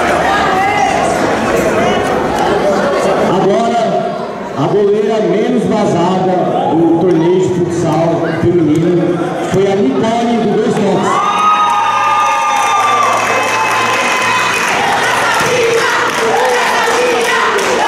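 A young man announces with animation over a loudspeaker in a large echoing hall.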